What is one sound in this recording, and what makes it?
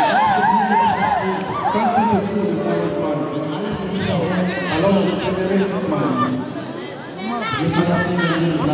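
A man speaks fervently into a microphone, amplified by loudspeakers.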